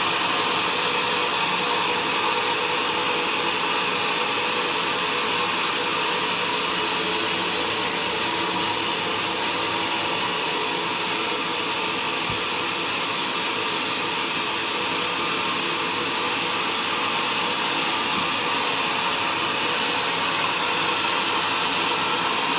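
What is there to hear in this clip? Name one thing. A band saw whines loudly, cutting through a log.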